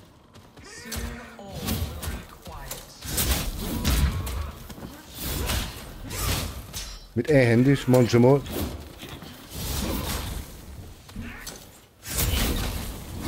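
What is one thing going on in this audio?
Blades swish and clang in a fast fight.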